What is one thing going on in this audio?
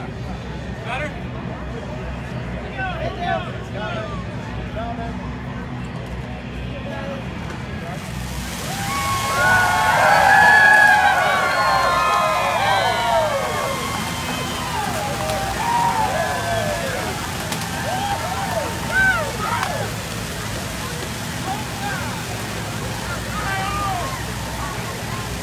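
A crowd talks and murmurs outdoors.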